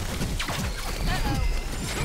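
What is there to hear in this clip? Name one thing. Laser beams blast and crackle loudly.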